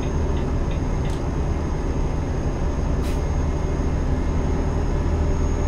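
A diesel truck engine drones while cruising, heard from inside the cab.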